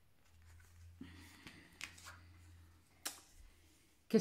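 Playing cards rustle and tap.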